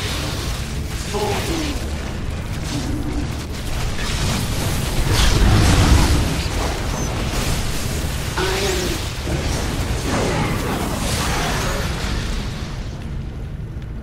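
Electric blasts crackle and zap in a busy video game battle.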